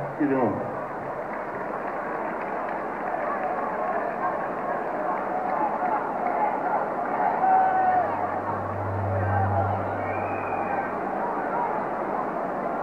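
A large crowd of men and women murmurs and chatters outdoors.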